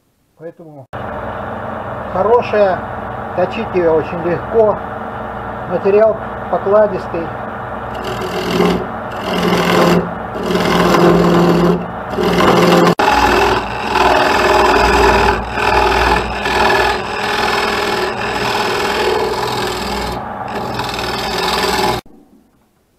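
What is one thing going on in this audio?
A wood lathe motor hums steadily.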